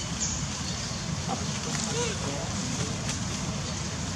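A monkey calls out with short, shrill cries close by.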